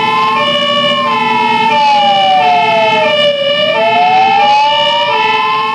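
A fire engine siren wails, rising and falling.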